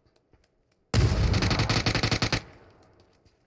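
A smoke grenade bursts with a loud hiss.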